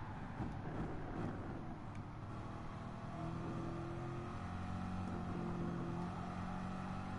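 A racing car engine roars and revs up through the gears.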